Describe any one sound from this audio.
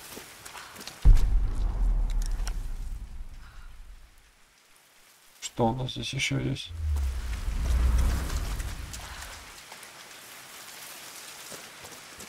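Footsteps tread on wet ground.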